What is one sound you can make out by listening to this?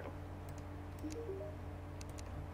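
A game menu opens with a short soft blip.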